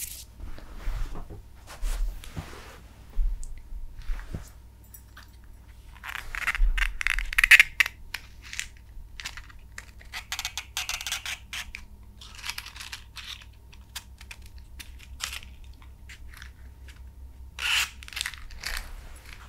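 Fingers tap and scratch on a cardboard matchbox.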